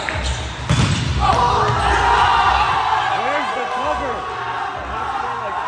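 Young players cheer and shout loudly.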